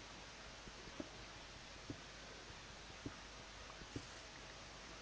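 Footsteps tap slowly on stone.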